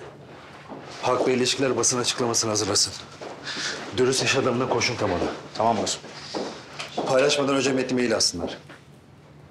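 A man speaks tensely, close by.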